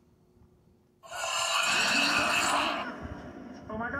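Cartoon children scream in fright through a television speaker.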